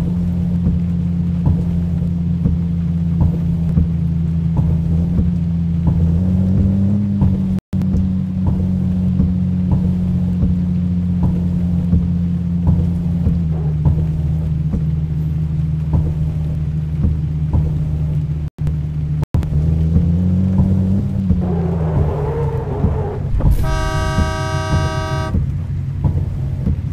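A car engine hums steadily, rising briefly in pitch now and then.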